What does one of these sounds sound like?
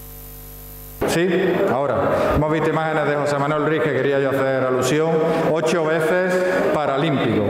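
A man speaks into a microphone over loudspeakers, addressing an audience.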